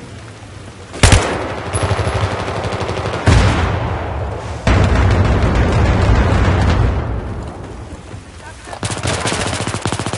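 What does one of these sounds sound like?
A rifle fires in short, rapid bursts.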